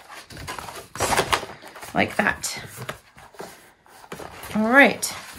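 Stiff paper rustles and slides as hands handle it.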